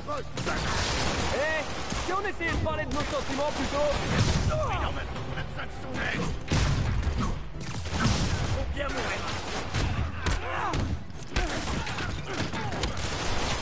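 Punches and impacts thud during a fight.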